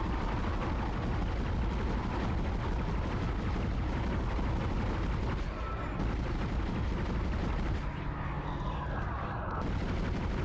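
A futuristic gun fires repeated shots.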